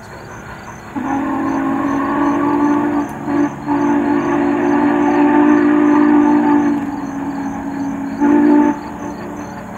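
A steam train whistle blows long, loud blasts from a distance.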